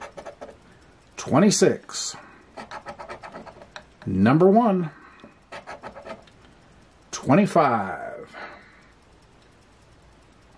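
A coin scratches rapidly across a card.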